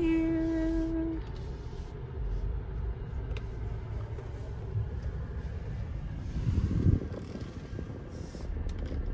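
A car engine idles with a low, steady rumble, heard from inside the car.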